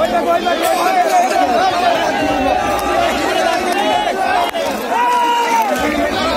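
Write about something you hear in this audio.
A crowd of men talk and shout loudly outdoors.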